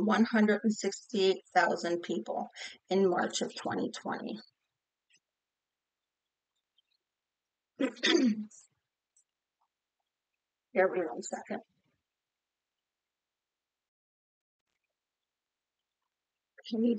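A middle-aged woman talks calmly and close up, with pauses.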